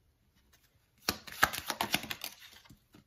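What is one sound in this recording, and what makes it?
A deck of playing cards is shuffled with quick flapping riffles.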